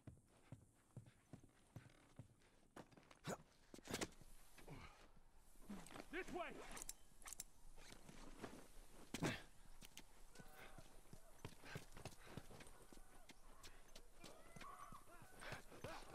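Footsteps scuff across the ground.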